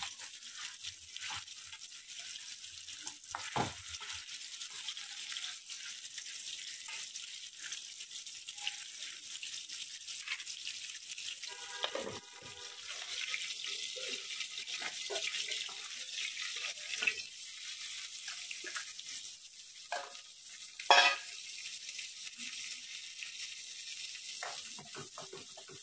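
Food sizzles and hisses in hot oil in a pan.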